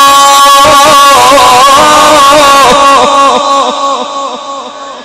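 A man chants in a long, wavering melody through a microphone.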